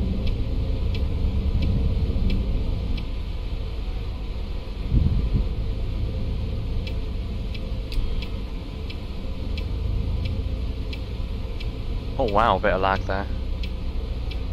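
A bus engine rumbles steadily as the bus drives.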